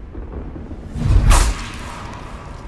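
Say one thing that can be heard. A blade stabs into armour with a heavy, ringing thrust.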